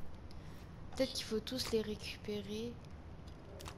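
Soft clicks sound as a card is placed into a slot.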